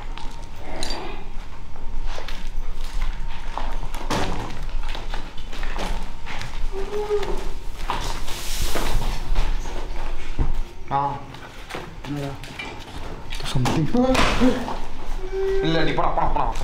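Footsteps crunch over rubble and debris.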